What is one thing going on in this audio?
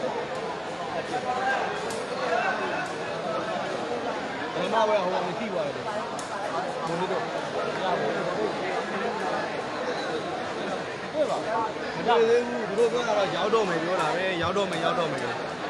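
Sandals slap and scuff on a hard floor.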